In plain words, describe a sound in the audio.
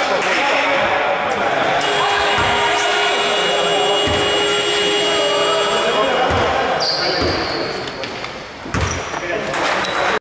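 Men talk in an echoing hall.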